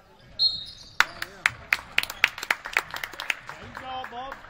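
A basketball thumps as it bounces on the court.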